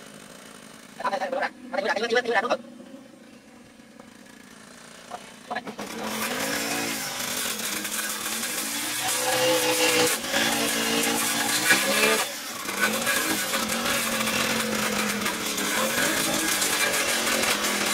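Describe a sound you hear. A string trimmer engine whines loudly close by, revving up and down.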